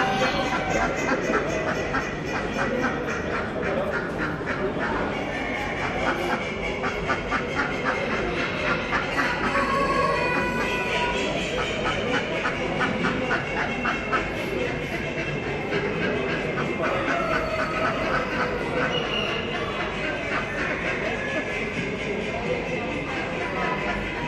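A chicken clucks nearby.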